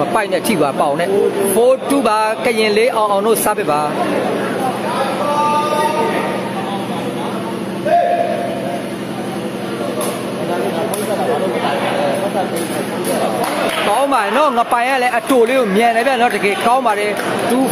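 A large crowd of spectators chatters and calls out.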